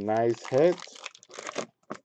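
Hands shuffle and tap a stack of card packs.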